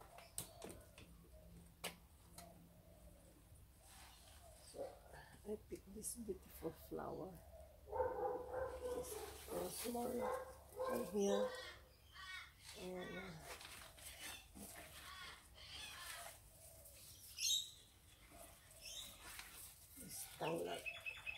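Leaves rustle as a woman handles plants.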